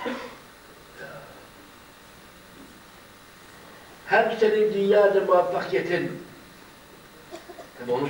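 An elderly man reads out in a slow, chanting voice through a microphone.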